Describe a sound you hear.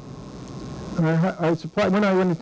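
An elderly man speaks calmly into a microphone in a large room.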